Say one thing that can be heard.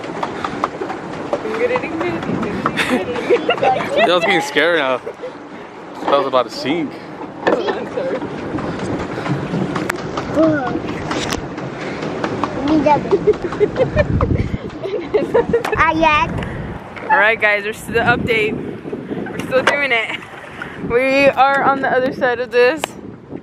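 Water laps against a small boat.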